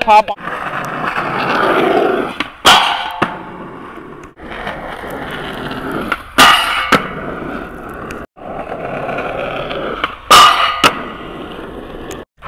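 Skateboard wheels roll and rumble on asphalt.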